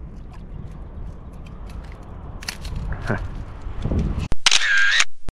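Water splashes and laps around a person wading.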